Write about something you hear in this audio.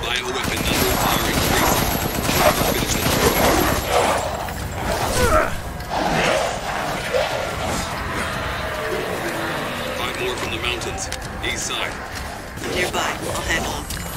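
Gunfire rattles in bursts.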